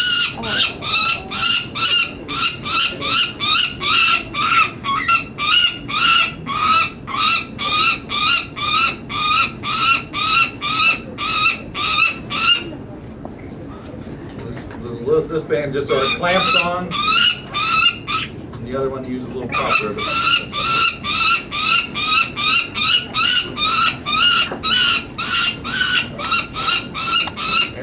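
A young bird cheeps loudly over and over, in quick, steady calls.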